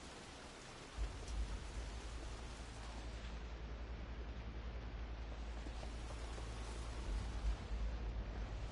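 A low, rumbling hum throbs steadily.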